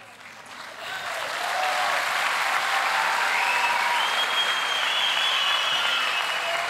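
A crowd applauds and cheers loudly in a large hall.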